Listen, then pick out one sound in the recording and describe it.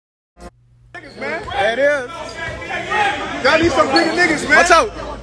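A crowd of young men talks and shouts with excitement in an echoing gym.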